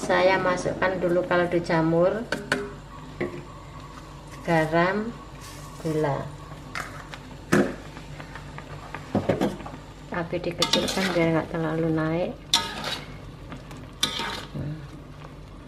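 A metal spatula scrapes and taps against a wok.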